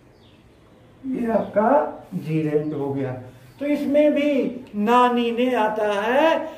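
An older man speaks clearly and slowly, close by.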